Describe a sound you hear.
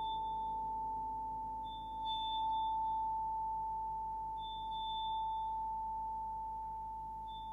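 A steady electronic tone hums.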